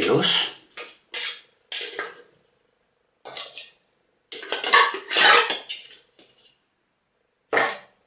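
Ice cubes clatter into a metal tin.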